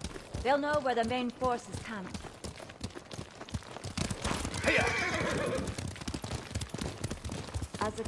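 Horses' hooves beat quickly on a dirt path.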